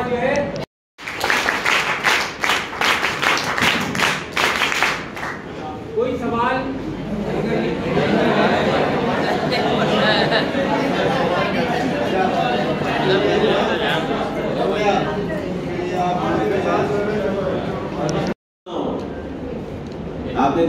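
An elderly man speaks through a microphone and loudspeaker.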